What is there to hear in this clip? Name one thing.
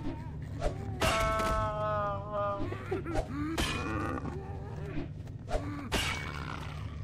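An axe strikes flesh with heavy wet thuds.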